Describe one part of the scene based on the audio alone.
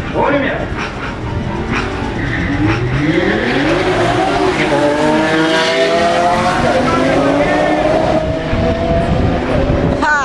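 Race car engines roar loudly and rise in pitch as they speed away down the track.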